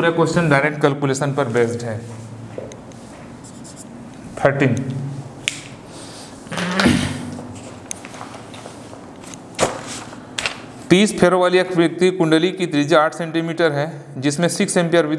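A man speaks calmly and clearly, as if teaching, close to a microphone.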